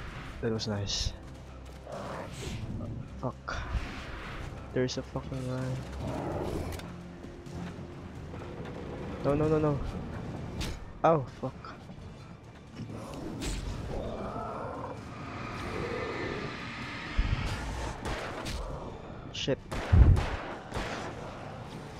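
Footsteps crunch on gravel and thud on wooden planks.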